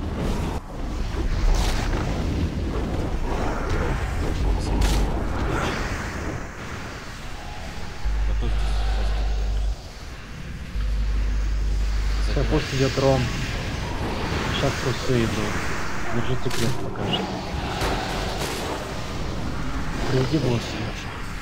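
Magic spells crackle and blast in a hectic battle.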